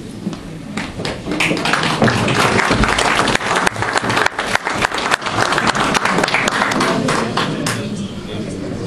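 A crowd applauds in a room with some echo.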